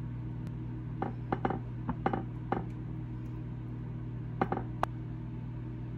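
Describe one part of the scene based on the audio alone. A spatula scrapes and taps on bread.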